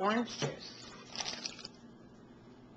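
Liquid pours and splashes into a pot.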